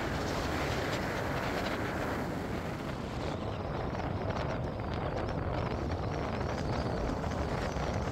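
Wind gusts and rumbles against the microphone outdoors.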